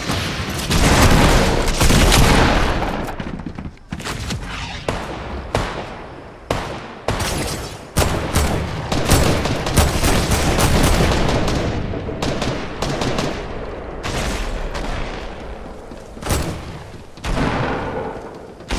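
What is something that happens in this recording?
Footsteps clatter quickly across a hollow roof.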